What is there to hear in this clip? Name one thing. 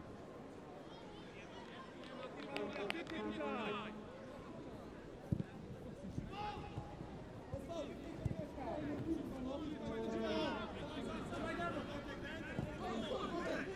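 A large crowd murmurs and chants in an open stadium.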